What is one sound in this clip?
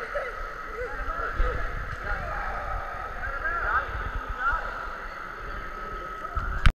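Young children call out and chatter, echoing in a large hall.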